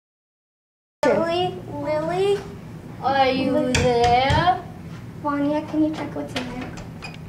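Another young girl answers in a lively voice.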